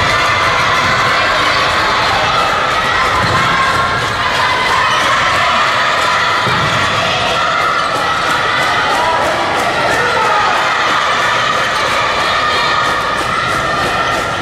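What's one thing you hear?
A crowd of children cheers and shouts loudly in an echoing hall.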